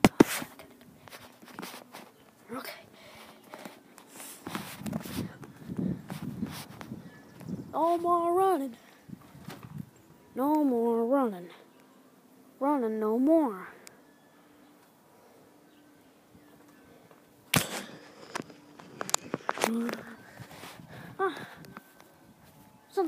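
A boy talks close to the microphone.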